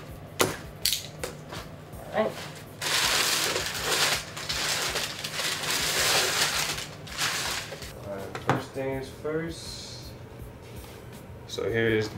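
Paper and cardboard rustle and crinkle as a box is unpacked.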